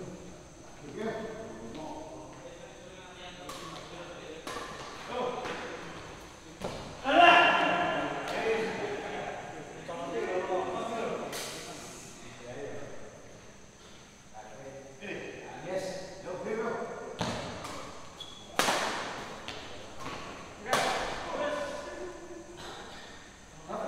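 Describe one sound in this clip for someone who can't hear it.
Men call out in an echoing hall.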